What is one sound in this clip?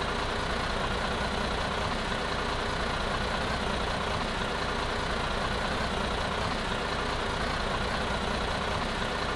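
A city bus engine idles.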